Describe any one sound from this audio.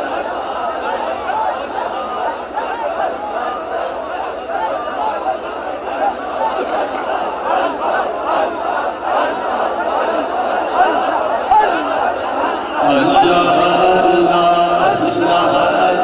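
A vast crowd murmurs and chants, voices echoing in the open air.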